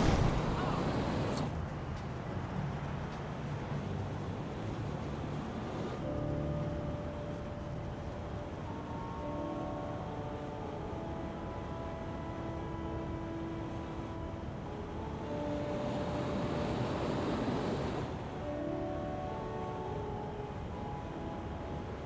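Jet thrusters roar steadily.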